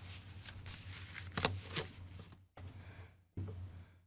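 A man speaks into a microphone, heard from across a room.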